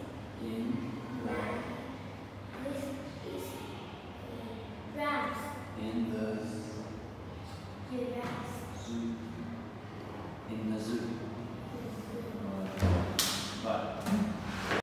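A young girl answers in a small voice, close by.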